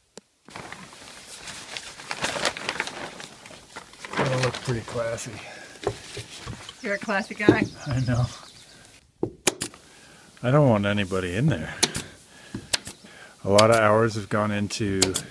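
A pneumatic stapler snaps sharply several times.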